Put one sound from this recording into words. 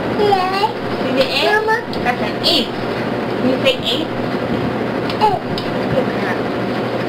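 A young child speaks and babbles in a high voice close by.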